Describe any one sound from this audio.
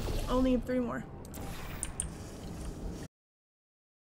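A sci-fi energy gun fires with a zapping whoosh.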